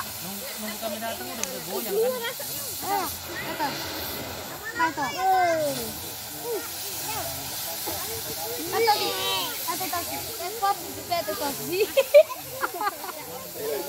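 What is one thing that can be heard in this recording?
Several men talk and call out nearby outdoors.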